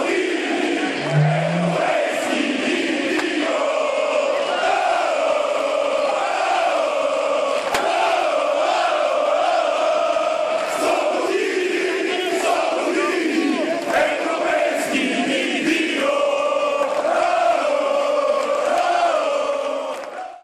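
A crowd of men chants loudly together outdoors.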